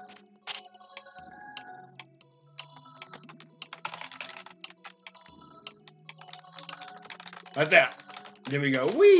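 Upbeat chiptune game music plays.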